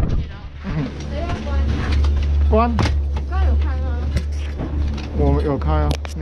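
A young man talks close by, with animation.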